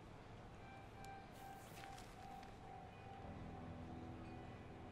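A sheet of newspaper rustles.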